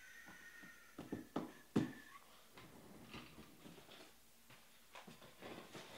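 A desk chair creaks and rolls as a man gets up.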